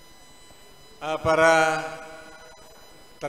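An elderly man speaks briefly into a microphone, heard through a loudspeaker.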